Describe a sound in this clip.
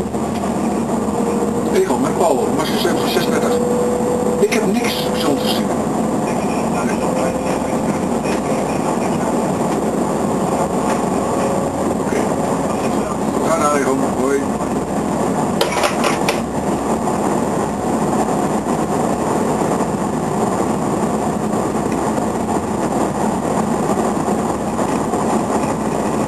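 A train's wheels click over rail joints.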